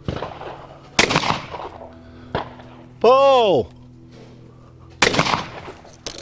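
A shotgun fires loudly outdoors, with echoing bangs.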